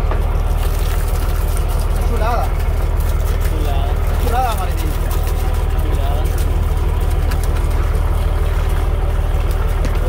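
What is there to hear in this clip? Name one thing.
A boat engine throbs steadily and loudly.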